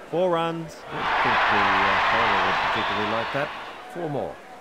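A crowd cheers loudly, then fades.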